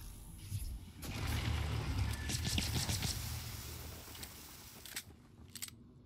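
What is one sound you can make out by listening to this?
A gun fires in a rapid, loud burst.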